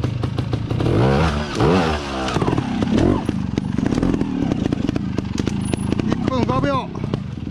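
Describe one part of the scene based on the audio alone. A motorcycle engine revs up sharply in short bursts.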